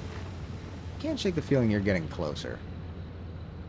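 A young man speaks briefly and casually into a microphone.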